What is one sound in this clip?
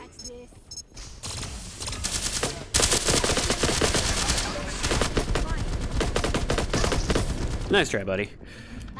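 Guns fire in rapid bursts.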